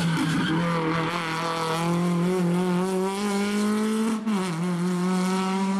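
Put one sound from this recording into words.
Tyres skid on loose gravel.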